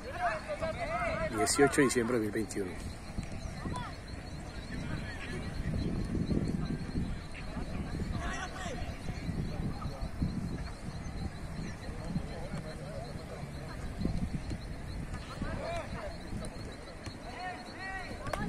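Young people shout and call out across an open field.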